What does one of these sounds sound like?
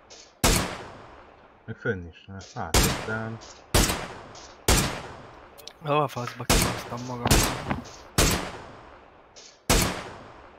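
Rifle shots ring out one after another, each loud crack trailing off in an echo.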